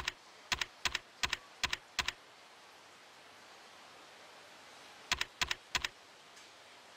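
Menu cursor clicks tick quickly as selections move.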